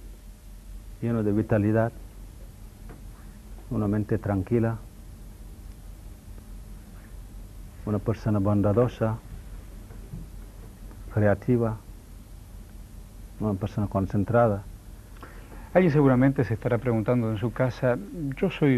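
A middle-aged man speaks calmly into a microphone in short phrases with pauses between them.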